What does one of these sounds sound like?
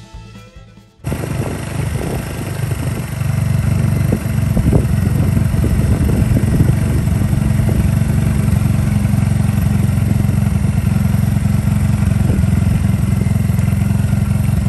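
A vehicle engine rumbles steadily close by.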